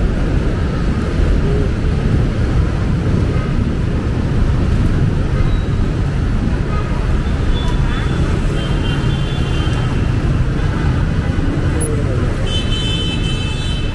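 Motorbike engines putter past.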